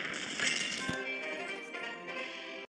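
Victory music plays.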